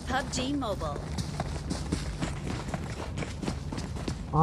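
Footsteps thud quickly on sandy ground.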